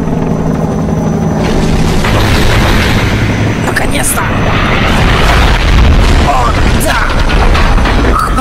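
A giant robot moves with heavy mechanical whirring and clanking.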